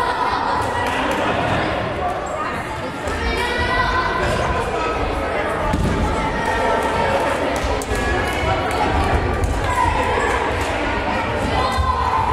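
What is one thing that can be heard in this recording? A volleyball thumps off hands.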